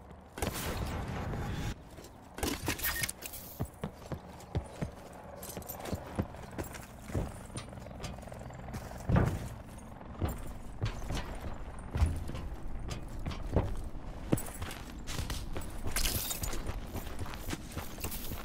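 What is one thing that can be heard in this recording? Quick footsteps thud on dirt and wood.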